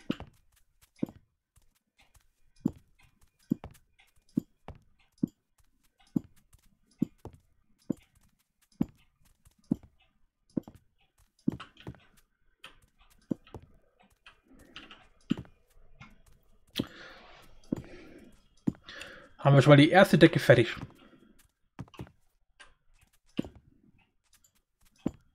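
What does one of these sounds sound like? Blocks thud softly as they are placed, again and again.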